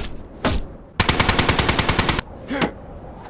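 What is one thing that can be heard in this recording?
A gun fires in a rapid burst, close by.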